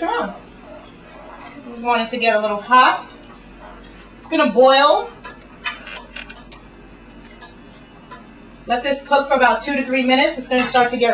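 A wooden spoon stirs and scrapes in a cooking pot.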